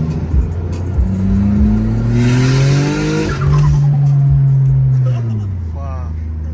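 A car engine revs up, then settles back down.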